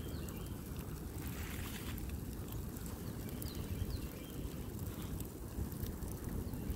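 A fire roars and crackles outdoors.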